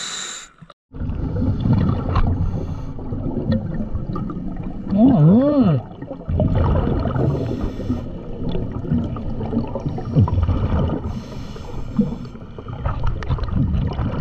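A scuba diver breathes through a regulator underwater, with bubbling and rumbling.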